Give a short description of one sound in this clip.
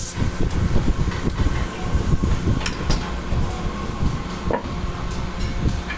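A wood lathe whirs as a chisel scrapes spinning wood.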